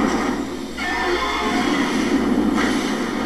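Fire roars in a loud, rushing burst.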